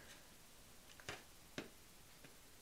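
A card is set down on a wooden table with a soft tap.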